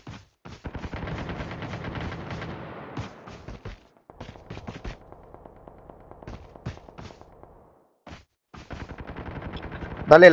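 Quick footsteps patter over grass and dirt.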